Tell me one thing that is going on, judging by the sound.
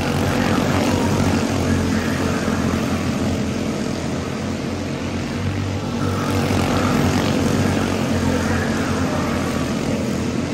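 Small racing kart engines buzz loudly as the karts speed around a curve.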